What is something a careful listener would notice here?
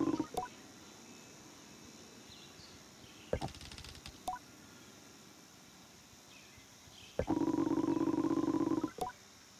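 A soft click sounds now and then.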